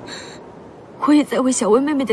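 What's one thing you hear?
A young woman speaks quietly and sadly nearby.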